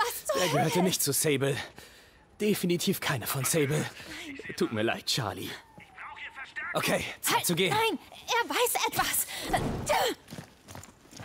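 A young woman speaks anxiously.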